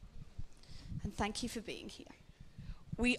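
A woman speaks through a microphone.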